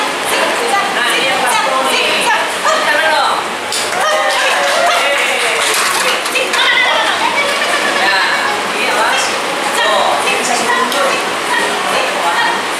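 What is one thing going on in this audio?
A young woman talks encouragingly to a dog nearby.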